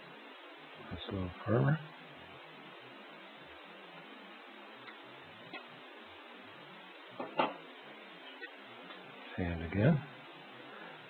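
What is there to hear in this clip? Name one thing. A stylus scrapes and rubs against thin metal foil.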